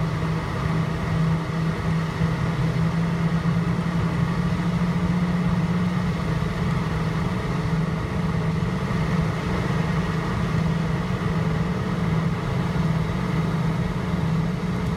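Jet engines hum and roar steadily from inside an aircraft cabin.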